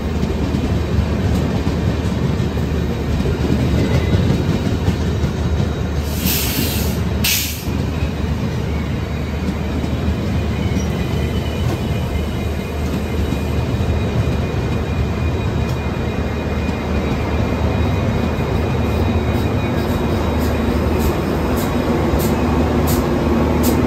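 A passing train rumbles and clatters loudly close by.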